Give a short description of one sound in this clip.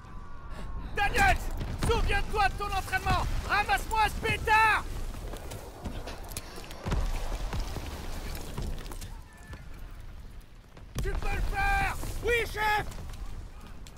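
A man shouts orders urgently.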